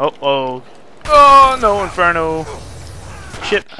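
A man shouts angrily nearby.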